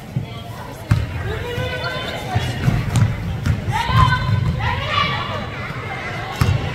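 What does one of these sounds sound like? Spectators shout and cheer from close by.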